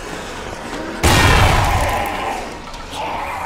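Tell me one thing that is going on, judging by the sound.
A grenade explodes with a loud boom.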